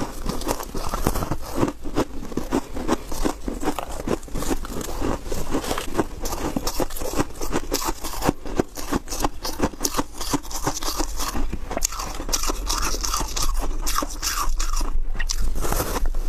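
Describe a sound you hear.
A young woman bites and crunches into soft ice close to a microphone.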